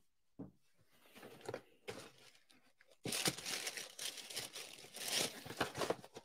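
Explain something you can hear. Paper and cardboard rustle close by.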